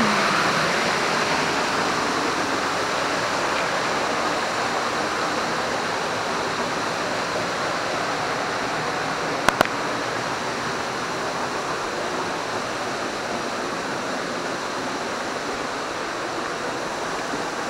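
A stream rushes steadily nearby.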